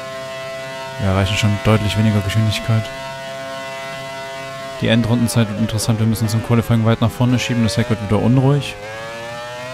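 A racing car engine crackles and pops loudly while slowing down.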